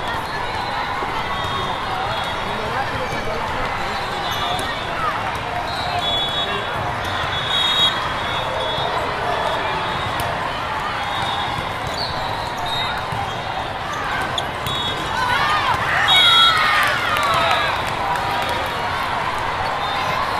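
A crowd chatters and cheers throughout a large echoing hall.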